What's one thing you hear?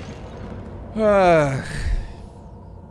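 A man yells out in alarm.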